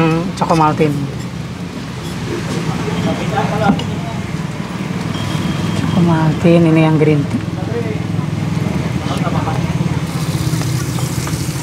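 Batter sizzles steadily on a hot griddle.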